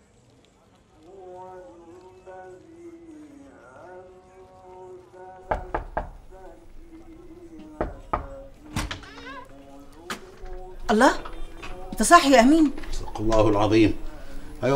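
A middle-aged man chants a recitation in a slow, melodic voice.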